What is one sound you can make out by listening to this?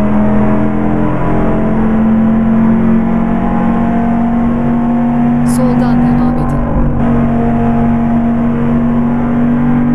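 A car engine hums steadily at an even speed.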